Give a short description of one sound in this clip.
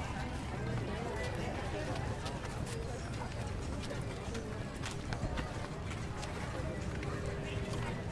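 Men and women chat in passing nearby.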